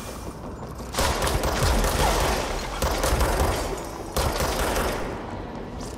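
A pistol fires in rapid bursts.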